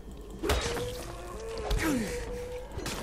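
A heavy blade slashes and thuds into a body.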